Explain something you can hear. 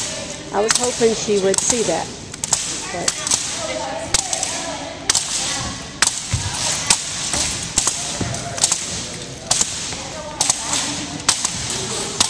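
Young women talk and call out in a large echoing hall.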